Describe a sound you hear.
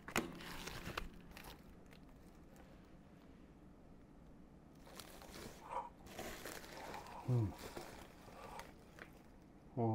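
Plastic wrap crinkles and rustles close by.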